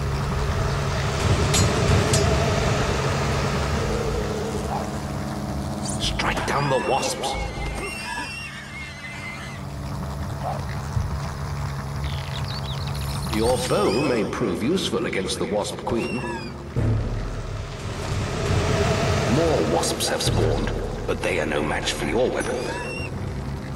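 A giant insect buzzes loudly with beating wings.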